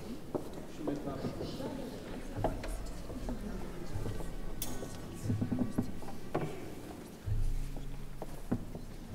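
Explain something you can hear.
An elderly man speaks softly into a microphone in an echoing hall.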